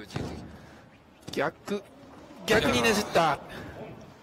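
A body lands with a thud on a mat.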